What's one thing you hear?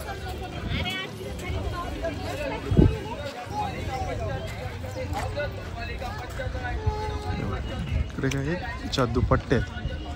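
A crowd of people chatters all around outdoors.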